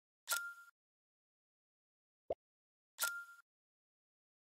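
Menu clicks sound twice.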